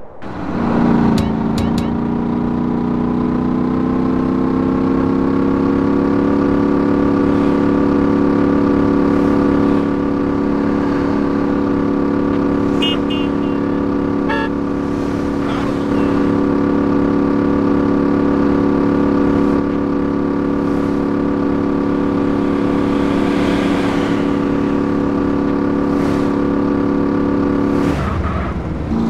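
A vehicle engine hums steadily as it drives along a road.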